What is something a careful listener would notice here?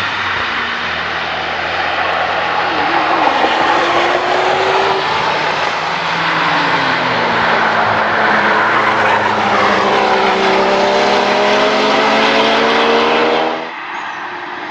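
A car engine roars and revs up and down as it speeds past through bends.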